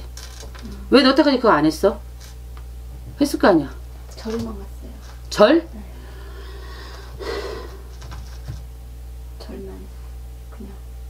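A woman speaks with animation close to a microphone, in short bursts.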